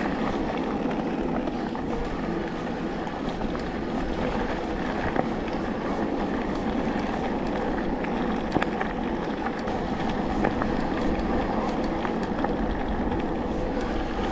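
Bicycle tyres roll and crunch steadily over a dirt trail.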